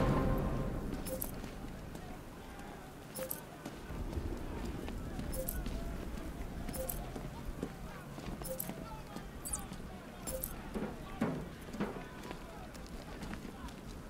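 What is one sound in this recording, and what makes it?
Heavy footsteps clank on a metal walkway.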